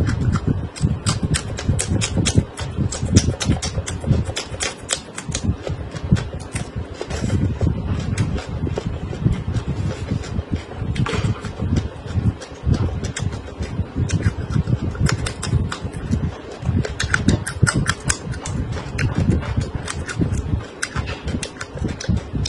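A young woman crunches loudly on crisp peppers close to a microphone.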